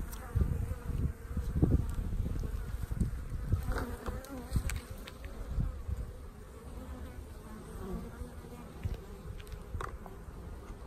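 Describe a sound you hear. Bees buzz steadily close by.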